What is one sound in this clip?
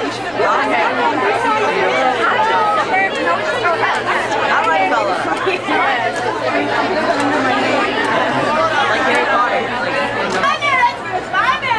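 A crowd of young women and teenagers chatters loudly and excitedly all around.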